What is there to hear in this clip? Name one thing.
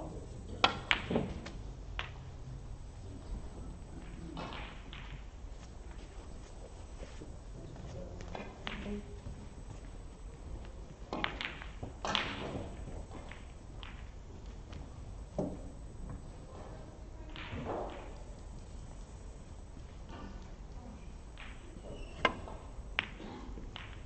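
Snooker balls knock together with a crisp clack.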